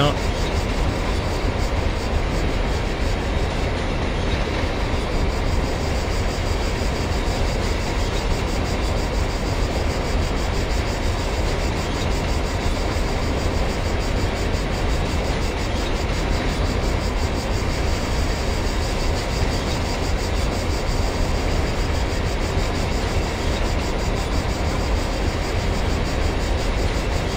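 Train wheels clatter rhythmically over rail joints.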